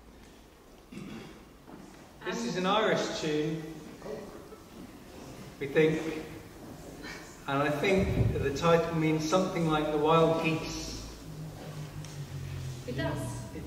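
A man speaks to an audience in an echoing hall.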